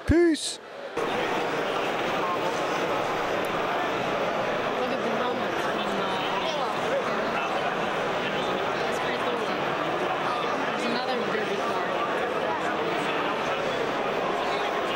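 A crowd chatters loudly in a large hall.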